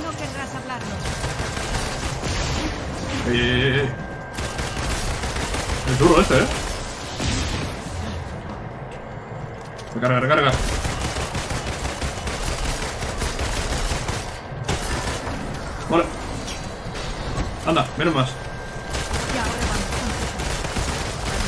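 Gunshots and energy blasts crackle and boom in quick bursts.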